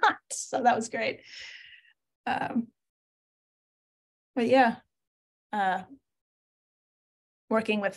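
A young woman speaks with animation, close to a microphone, in short bursts.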